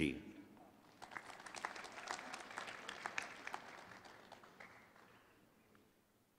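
An audience applauds in a large hall, then the clapping fades away.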